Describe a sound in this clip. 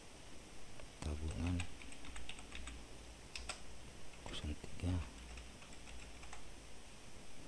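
Keys clatter quickly on a computer keyboard.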